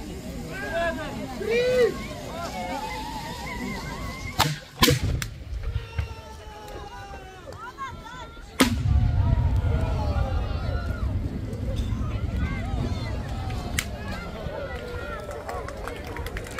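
Men and women nearby talk and call out excitedly.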